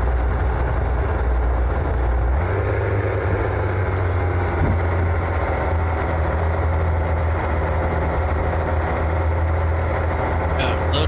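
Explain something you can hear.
A truck engine rumbles steadily at low speed.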